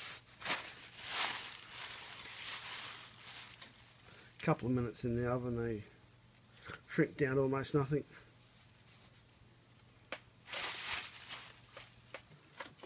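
Plastic bags crinkle and rustle as hands press them.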